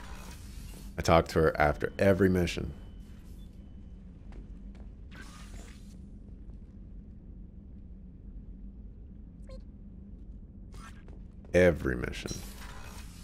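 A man talks into a microphone, close up and with animation.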